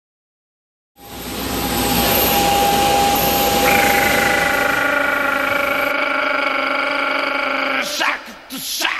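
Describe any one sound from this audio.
Jet engines roar steadily close by.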